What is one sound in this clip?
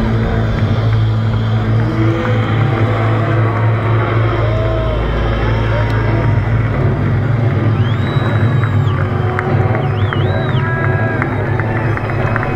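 Amplified music plays loudly over loudspeakers, with a deep booming bass.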